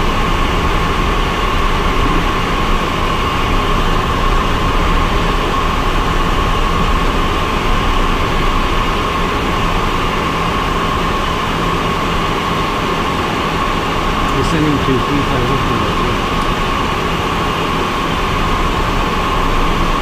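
An aircraft engine drones steadily from inside a small plane's cabin.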